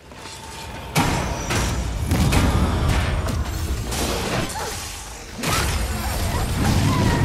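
Magic blasts burst and crackle loudly.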